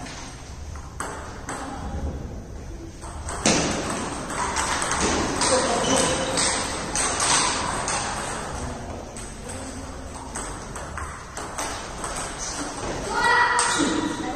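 A table tennis ball clicks back and forth against paddles and the table.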